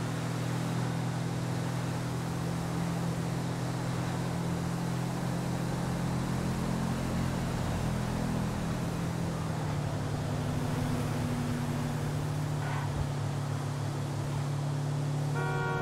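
Tyres rumble over a dirt road.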